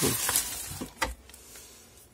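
Pruning shears snip through a plant stem.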